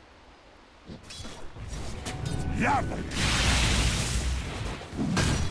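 Game spells burst and weapons clash loudly in a fight.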